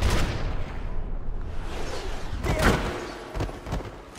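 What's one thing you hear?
A body thuds onto a hard floor.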